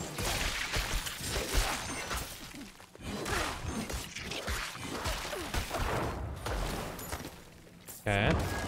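Weapons slash and thud against monsters in quick, repeated hits.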